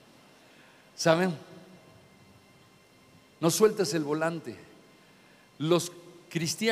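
A middle-aged man speaks with animation into a microphone in a large hall.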